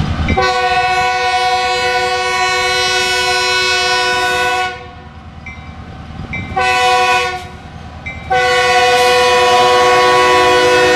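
A train horn blows loudly in long blasts as a locomotive approaches.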